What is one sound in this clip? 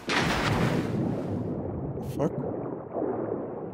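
Water gurgles and bubbles, heard muffled from underwater.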